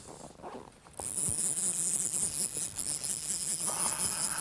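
A river rushes and gurgles close by.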